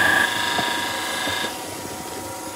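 A chisel scrapes and shrieks against spinning wood.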